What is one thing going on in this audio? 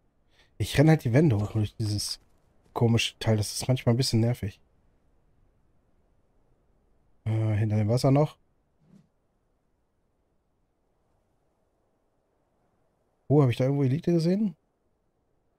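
A man talks casually into a close microphone, in short bursts.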